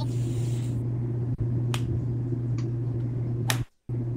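A golf club taps a ball with a light click.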